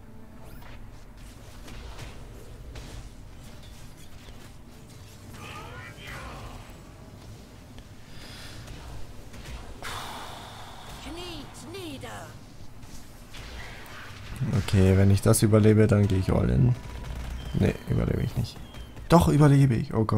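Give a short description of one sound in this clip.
Magic blasts and weapon clashes ring out in a fantasy battle.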